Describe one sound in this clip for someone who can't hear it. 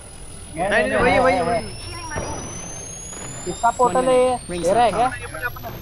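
A charging device whines, rising steadily in pitch.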